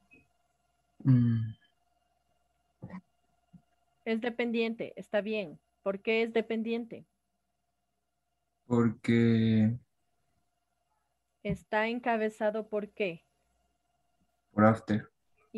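A young woman speaks calmly over an online call.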